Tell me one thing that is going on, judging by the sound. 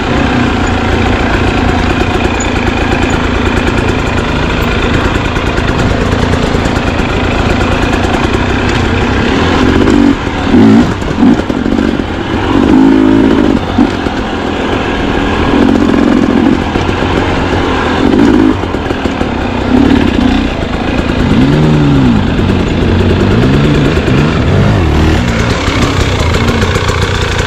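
A dirt bike engine idles and revs up close.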